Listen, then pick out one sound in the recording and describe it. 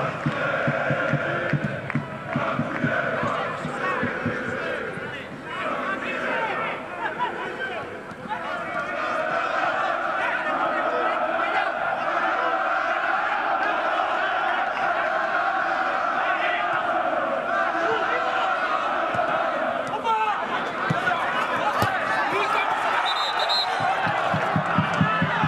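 A large crowd sings and chants steadily from the stands.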